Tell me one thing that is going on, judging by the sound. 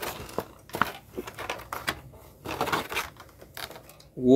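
Plastic parts click and rattle as a toy figure is handled.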